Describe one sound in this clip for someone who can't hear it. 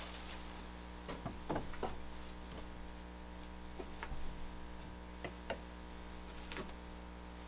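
Small objects tap and knock on a work surface.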